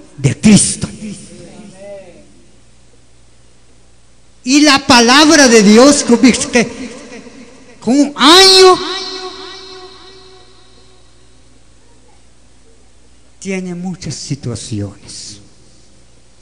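An elderly man speaks emphatically into a microphone over a loudspeaker, with echo.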